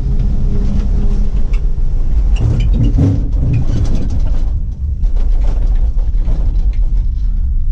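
A gondola cabin rumbles and rattles steadily as it moves along its cable.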